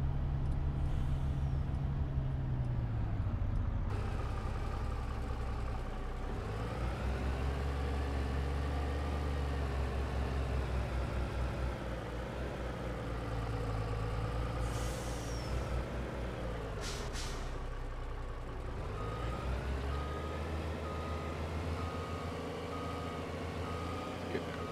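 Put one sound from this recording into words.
A heavy truck's diesel engine rumbles and revs up and down.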